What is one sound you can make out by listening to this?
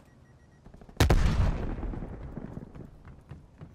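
A rifle fires a single loud shot that echoes and rolls away.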